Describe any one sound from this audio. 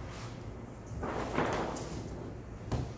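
A large plastic sheet flexes and swishes as it springs back.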